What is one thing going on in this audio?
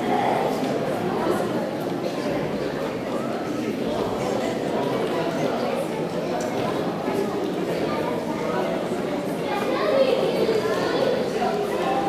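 A man speaks to the children.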